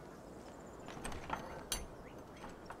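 A padlock rattles against a wooden door.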